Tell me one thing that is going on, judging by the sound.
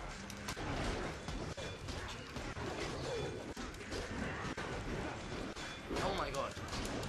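Warriors grunt and shout amid the fighting.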